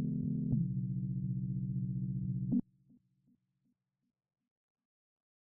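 A small electronic synthesizer plays low, steady buzzing notes that stop abruptly and echo away.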